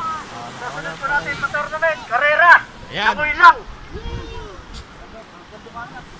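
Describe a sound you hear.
A man calls out through a megaphone.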